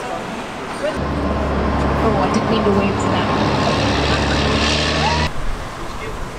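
A large vehicle's engine rumbles as it passes close by.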